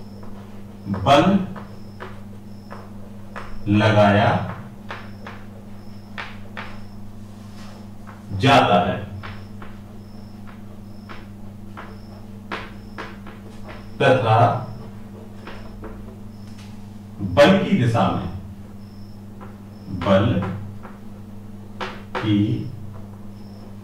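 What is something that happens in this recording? A man speaks in short bursts, explaining calmly.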